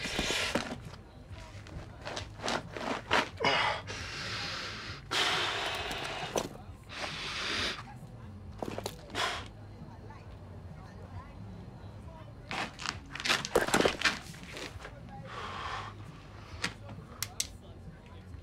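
Rocks and rubble scrape and clatter as they are moved by hand.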